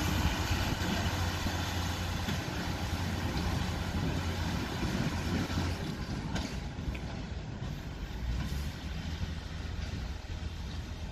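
A locomotive engine rumbles as it moves slowly away along the tracks.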